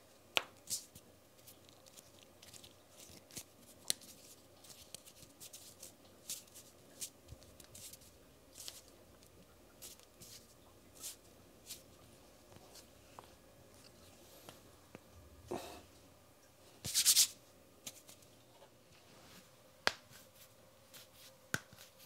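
Hands rub together softly and close by.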